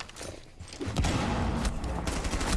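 Gunshots ring out nearby.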